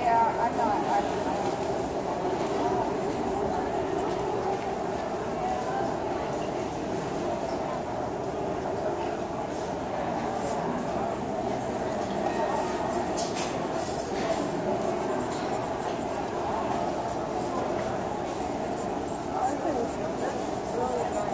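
A crowd of people chatters steadily in the background of a large room.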